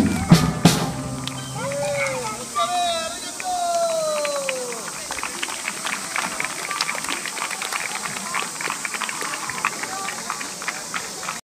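A steel drum band plays a lively tune outdoors.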